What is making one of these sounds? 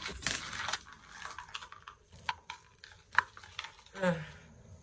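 A thin chain jingles softly.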